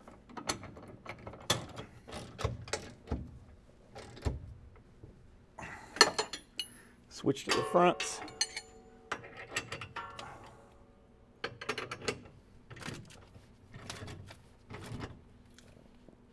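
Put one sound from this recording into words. Metal tools clink and click against a bolt.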